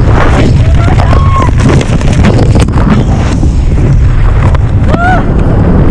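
A man shouts over the wind.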